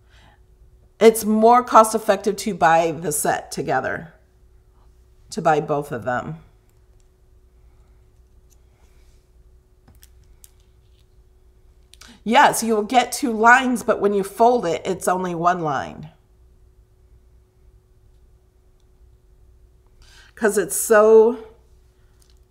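A woman speaks calmly into a close microphone, in short bursts with pauses.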